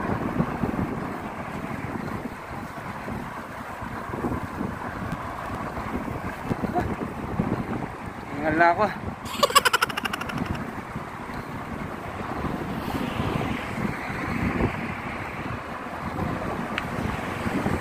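Cars drive past on a nearby road with a steady rumble.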